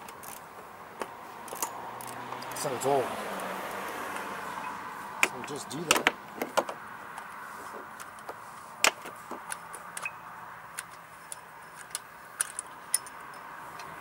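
Metal tools click and clink against an engine.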